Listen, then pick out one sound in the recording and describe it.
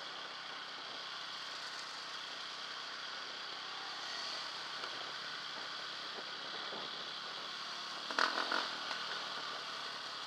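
A dirt bike engine hums steadily up close.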